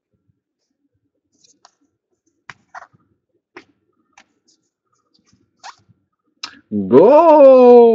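Cards flick and rustle as they are leafed through by hand.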